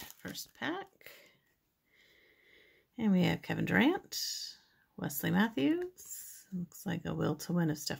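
Trading cards slide against each other.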